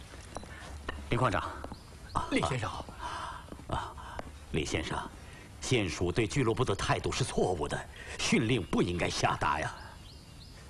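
An elderly man talks sternly at close range.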